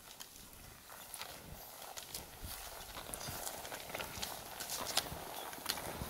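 Footsteps crunch softly in deep snow.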